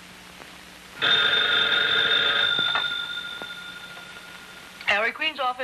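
A telephone rings steadily.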